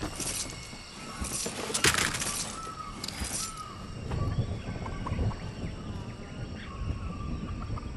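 Footsteps thud quickly across wooden boards.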